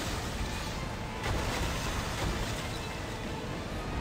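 Ice shatters and cracks.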